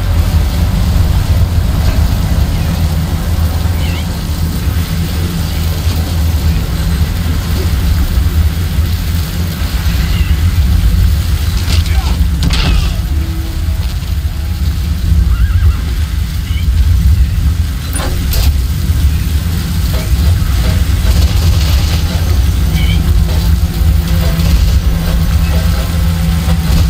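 Strong wind roars steadily in a sandstorm.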